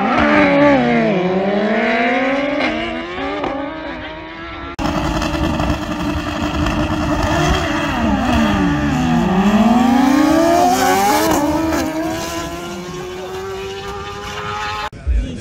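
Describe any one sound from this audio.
Sport motorcycles race past at full throttle, their engine pitch dropping as they go by.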